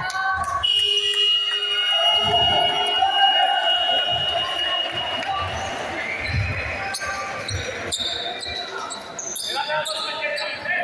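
Young men shout and chatter in a large echoing hall.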